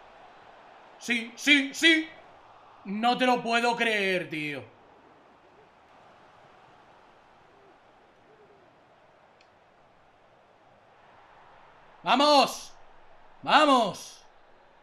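A young man talks and exclaims with excitement, close to a microphone.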